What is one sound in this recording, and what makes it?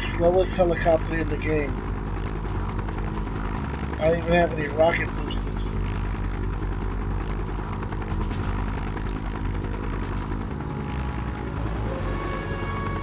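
A helicopter's rotor whirs steadily in flight.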